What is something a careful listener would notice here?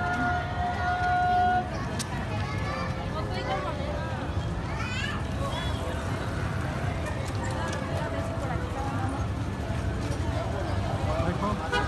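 A large crowd chatters outdoors all around.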